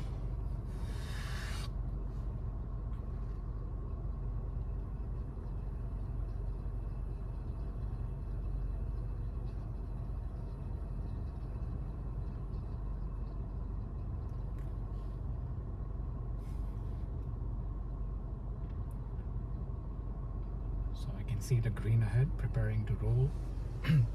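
A car engine idles with a low, steady hum inside a car.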